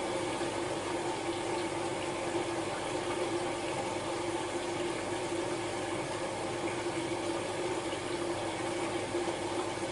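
A washing machine hums steadily as its drum turns slowly.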